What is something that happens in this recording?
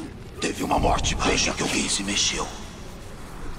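A man speaks with animation into a headset microphone, close by.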